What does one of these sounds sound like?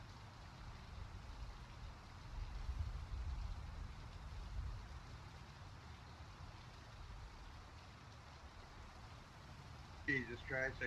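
Wind rushes steadily past a parachute gliding down.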